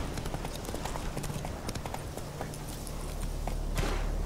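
Horse hooves thud on a forest floor.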